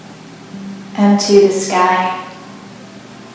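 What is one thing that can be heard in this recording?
A woman speaks calmly and softly, close by.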